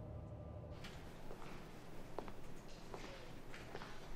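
Footsteps walk softly across a hard floor.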